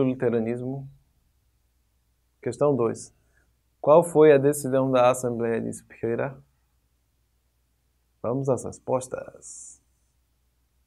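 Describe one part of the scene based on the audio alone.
A young man speaks clearly and calmly into a close microphone, in short bursts with pauses.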